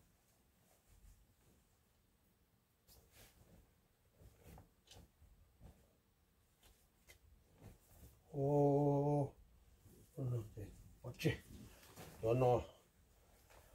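Plastic garment bags rustle and crinkle as they are handled.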